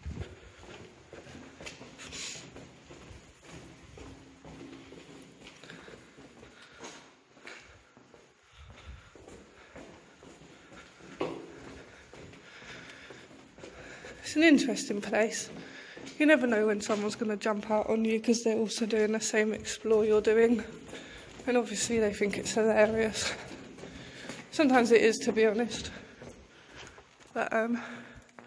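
Footsteps crunch on a gritty floor in an echoing tunnel.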